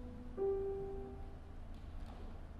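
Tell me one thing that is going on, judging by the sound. A piano plays a final chord that rings out in a large hall.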